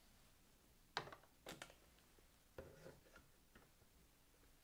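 Metal parts of an apparatus clatter and click as they are handled.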